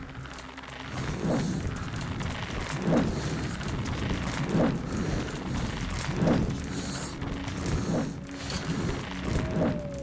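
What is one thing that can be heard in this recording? Footsteps crunch slowly over rough ground.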